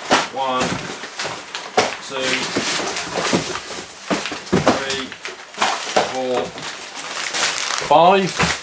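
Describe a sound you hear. Paper packing crinkles loudly.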